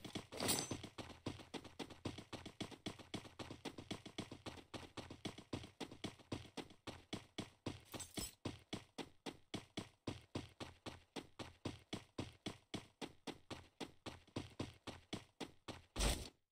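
Footsteps thud quickly and evenly on grass.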